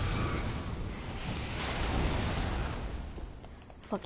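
Fire bursts with a roaring whoosh.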